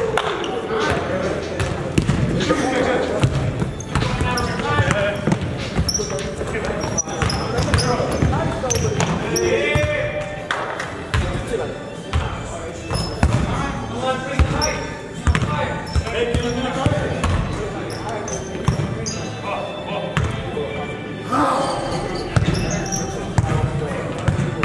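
Young men shout and call out to each other across an echoing gym.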